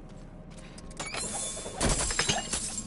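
A heavy chest creaks open.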